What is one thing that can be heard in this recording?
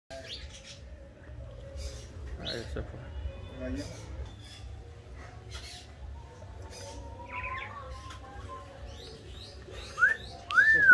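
Birds chirp and whistle close by outdoors.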